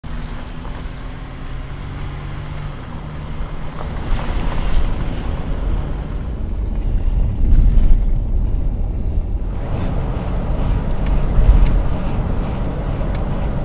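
Wind rumbles against the car.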